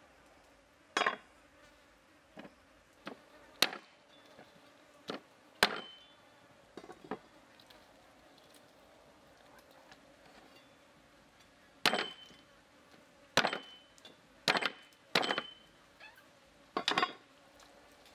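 A cleaver chops into meat and bone on a wooden block with sharp thuds.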